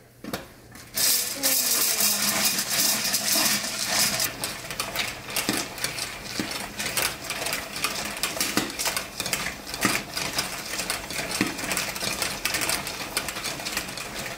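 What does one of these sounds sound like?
Kernels rattle and pop inside a covered pot on the stove.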